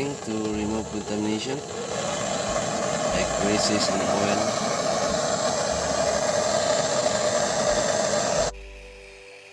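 A gas torch roars steadily, then cuts off.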